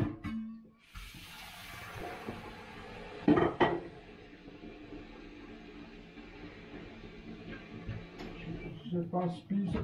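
Water runs from a tap.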